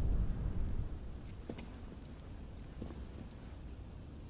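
Footsteps tap softly on a stone floor.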